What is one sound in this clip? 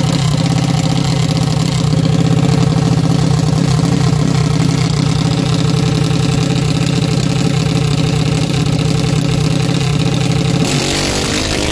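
A dragster's engine idles loudly with a deep, rapid rumble close by.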